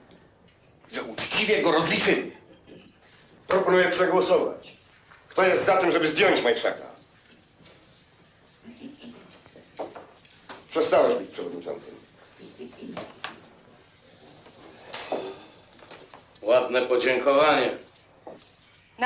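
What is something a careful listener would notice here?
A middle-aged man speaks forcefully, close by.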